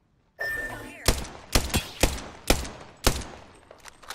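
A rifle fires several loud shots in short bursts.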